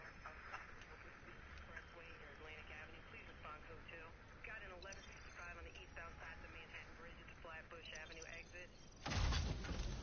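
An electronic signal warbles and wavers in pitch.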